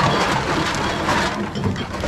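Glass bottles clink together in a plastic crate.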